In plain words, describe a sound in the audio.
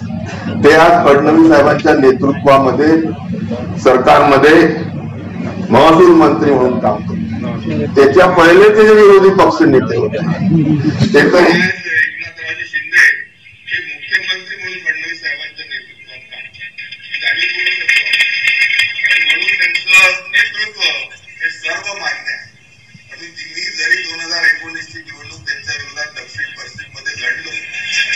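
A man speaks forcefully through a loudspeaker system, echoing outdoors.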